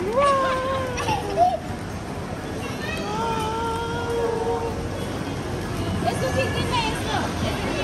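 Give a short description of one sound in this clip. Plastic balls clatter softly as a toddler pushes through them.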